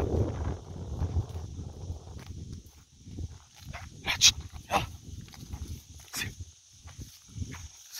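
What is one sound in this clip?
Cows tear at dry grass as they graze.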